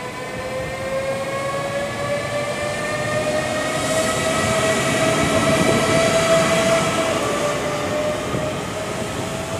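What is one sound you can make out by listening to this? A train's motors whine with a rising tone.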